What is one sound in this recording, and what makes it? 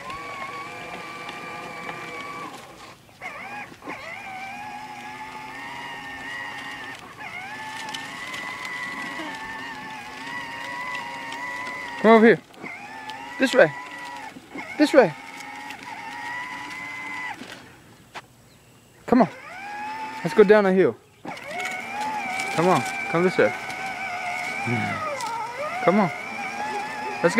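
An electric toy motor whines steadily.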